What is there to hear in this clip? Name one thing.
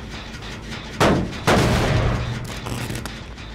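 A machine is kicked and bangs loudly, then sputters.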